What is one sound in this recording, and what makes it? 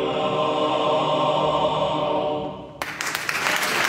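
A men's choir sings a held chord in an echoing hall.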